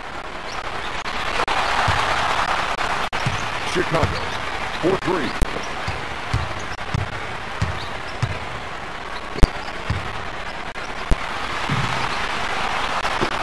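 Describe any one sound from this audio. An arena crowd cheers.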